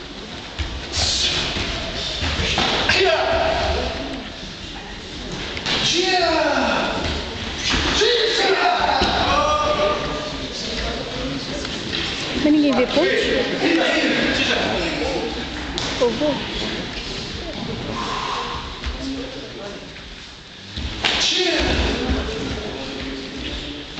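A crowd of young voices shouts and cheers in a large echoing hall.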